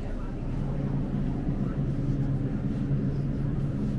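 Refrigerated display cases hum steadily.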